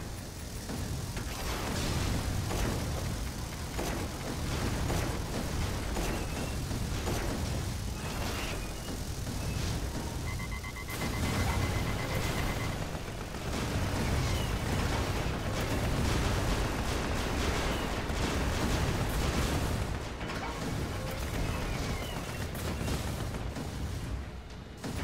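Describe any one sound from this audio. Guns fire rapidly in a dense battle.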